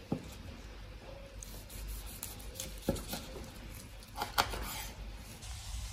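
A knife slices through a sushi roll on a board.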